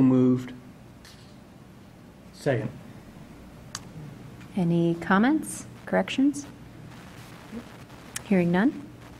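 A woman speaks calmly into a microphone, in short phrases.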